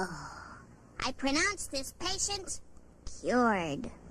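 A young girl speaks with animation, close by.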